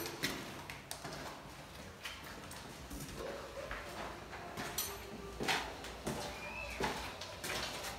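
Footsteps scuff across a hard floor.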